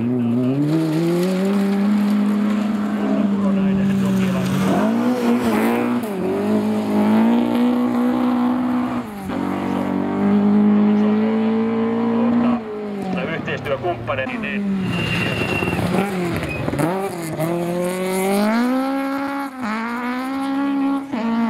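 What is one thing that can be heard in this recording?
A rally car engine revs hard and roars past, rising and falling in pitch as the gears change.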